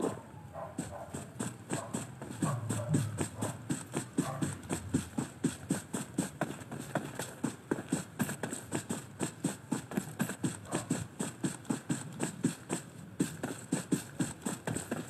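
Steady, rhythmic rustling of movement through dry grass.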